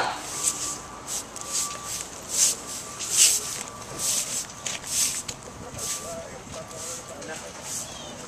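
Footsteps shuffle on pavement.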